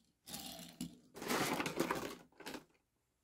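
A small toy car rolls briefly across a soft mat.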